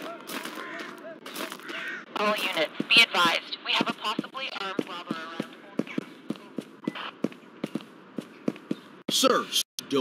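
Footsteps tap quickly on hard pavement.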